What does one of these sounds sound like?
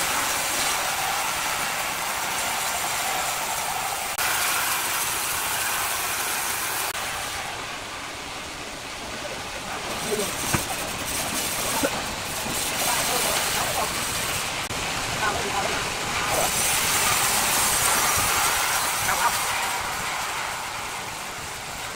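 A band saw cuts steadily through a large log with a loud, high hiss.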